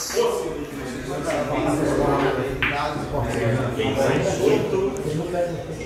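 Billiard balls clack against each other and roll on the table.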